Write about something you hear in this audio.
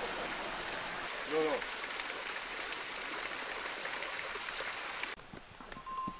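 Water splashes and gurgles as it pours from a pipe onto rocks.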